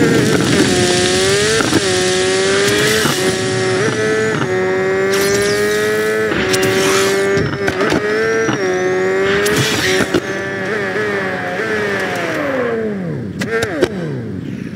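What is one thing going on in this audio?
A motorbike engine whines steadily at high speed, then winds down.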